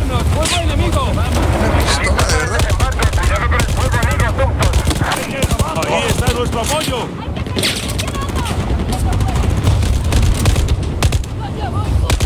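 Explosions rumble deeply in the background.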